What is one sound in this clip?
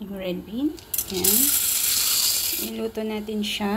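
Dry beans pour and rattle into a pot of water.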